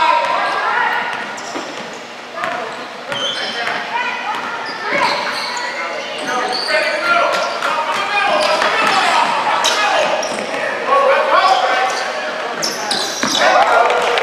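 A basketball bounces on a wooden floor.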